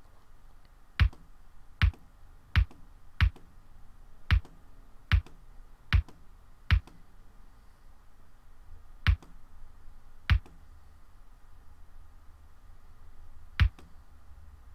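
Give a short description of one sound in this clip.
A short, sharp click sounds each time a game piece is placed.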